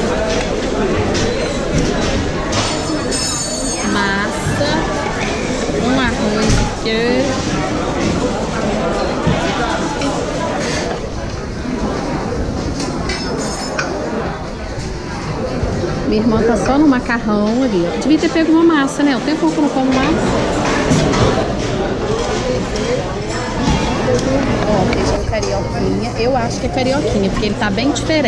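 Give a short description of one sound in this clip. Voices chatter nearby in a busy, echoing room.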